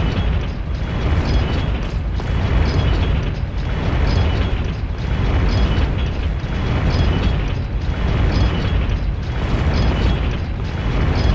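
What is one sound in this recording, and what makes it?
Heavy blades swoosh back and forth in a steady rhythm.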